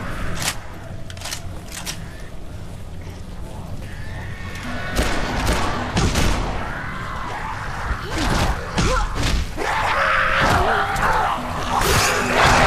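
A wooden paddle smacks hard into bodies.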